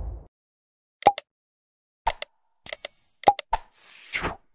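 A mouse button clicks several times.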